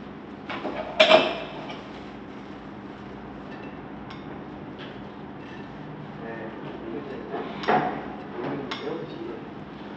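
A metal ladle clinks against a plate.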